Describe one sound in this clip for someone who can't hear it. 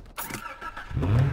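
A car engine starts and idles.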